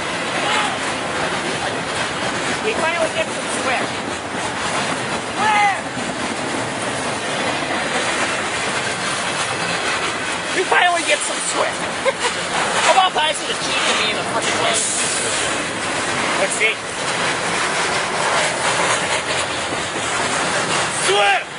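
A freight train rumbles past close by with a steady loud roar.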